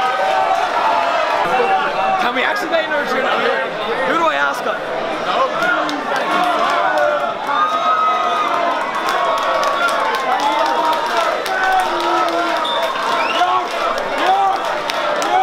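A large crowd cheers and shouts in a large echoing hall.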